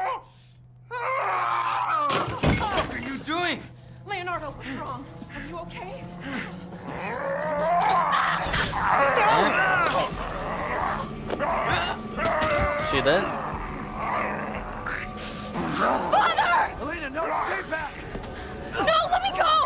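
An elderly man shouts angrily and snarls.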